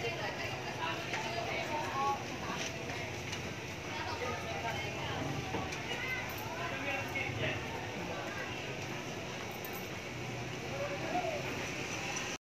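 Voices of men and women chatter in the distance.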